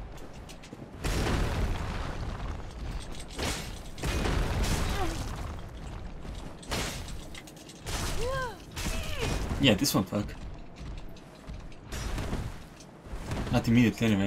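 A huge creature stomps and crashes heavily.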